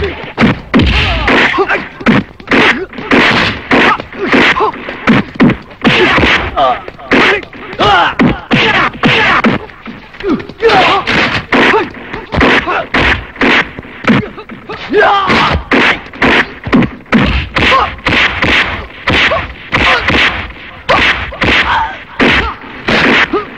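Punches land with heavy, sharp thuds again and again.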